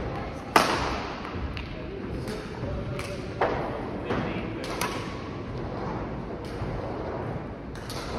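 Shoes squeak and patter on a court floor.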